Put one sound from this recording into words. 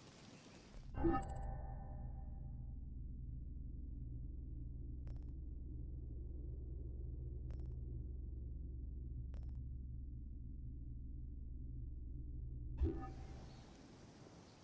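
A low, steady drone hums.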